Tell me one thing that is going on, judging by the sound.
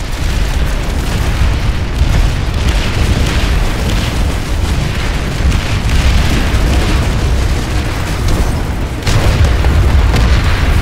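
A heavy vehicle engine rumbles steadily.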